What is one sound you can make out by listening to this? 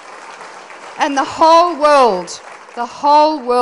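An elderly woman speaks expressively into a microphone.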